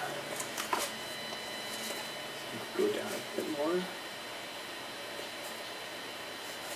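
A sheet of thin card rustles and scrapes.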